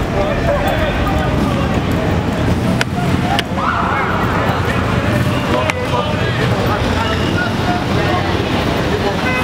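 A crowd of people talks and shouts outdoors.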